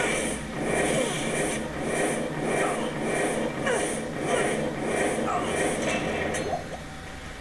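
Fiery blasts whoosh and burst in quick, repeated succession.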